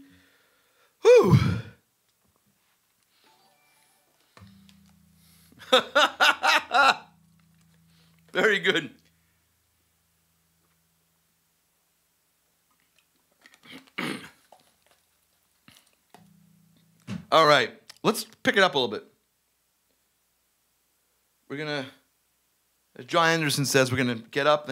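A man talks into a microphone with animation, in short bursts.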